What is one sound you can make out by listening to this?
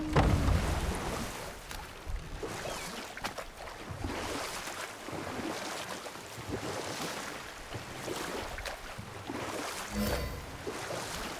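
Water splashes and swirls around a rowing boat.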